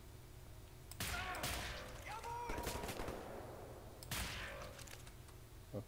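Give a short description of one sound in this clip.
Loud gunshots crack in short bursts, each ringing out afterwards.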